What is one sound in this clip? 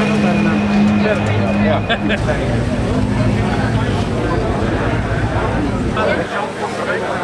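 A car engine idles nearby with a low hum.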